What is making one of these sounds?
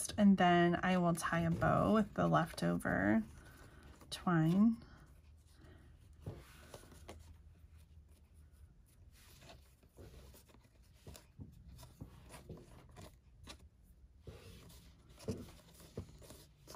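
Paper and card rustle softly as fingers handle them.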